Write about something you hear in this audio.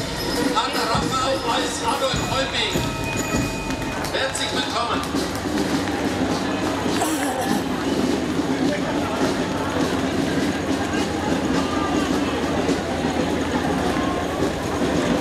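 Cart wheels rumble over cobblestones.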